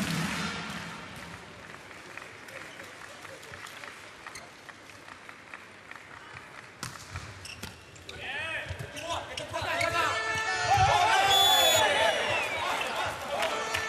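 A large crowd murmurs and cheers in a big echoing hall.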